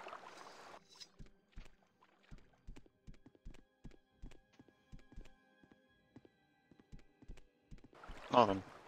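Footsteps crunch on rough ground at a steady pace.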